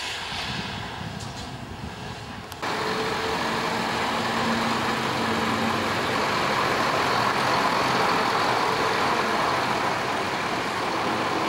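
A heavy truck engine rumbles loudly as the truck pulls slowly around a corner.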